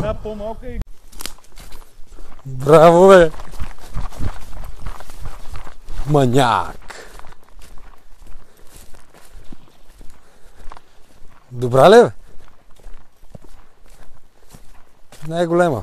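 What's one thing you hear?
Footsteps crunch on dry leaves and soil.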